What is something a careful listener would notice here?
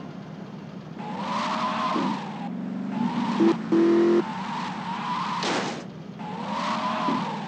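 A car engine revs and roars as a car drives around.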